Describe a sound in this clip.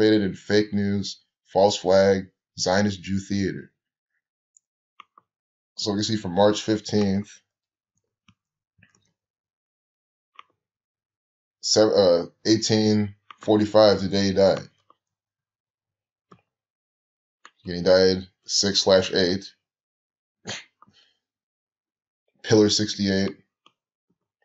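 A man speaks calmly into a microphone, in bursts with pauses.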